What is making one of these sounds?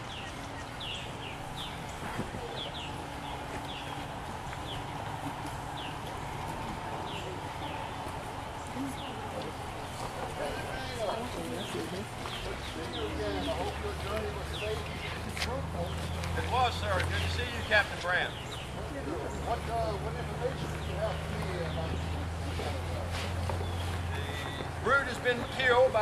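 A crowd murmurs and chatters quietly outdoors.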